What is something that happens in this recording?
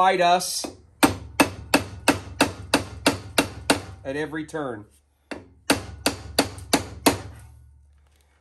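A hammer strikes metal in quick, sharp blows.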